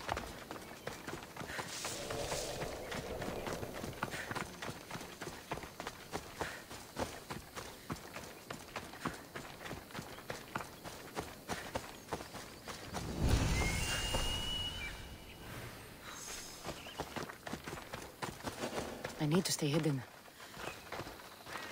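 Footsteps crunch on dry grass and gravel at a steady pace.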